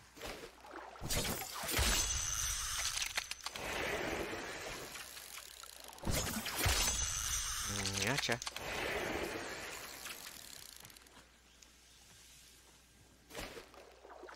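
Water splashes as a spear strikes a fish.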